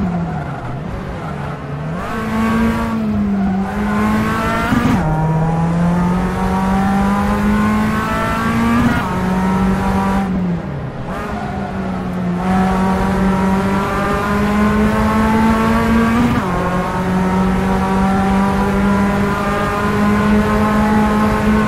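A car engine revs hard, climbing in pitch and dropping briefly at each gear change.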